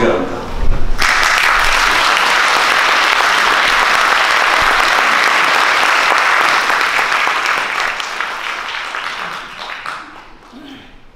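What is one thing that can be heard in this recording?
An audience applauds in an echoing hall, then fades away.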